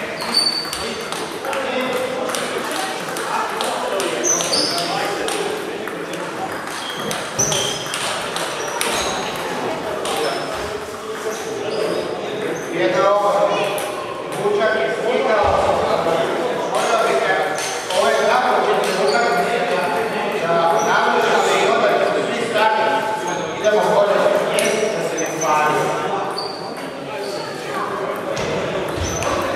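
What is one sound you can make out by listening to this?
Ping-pong balls click sharply against paddles and tables in a large echoing hall.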